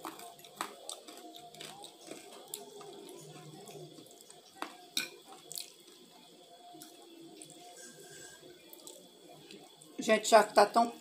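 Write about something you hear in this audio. Noodles are slurped and chewed up close.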